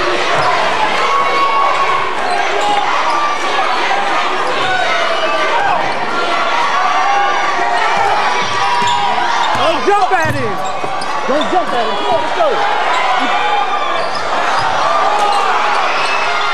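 A crowd cheers and murmurs throughout a large echoing gym.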